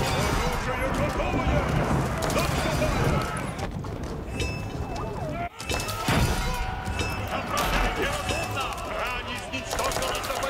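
Musket gunfire crackles in a battle.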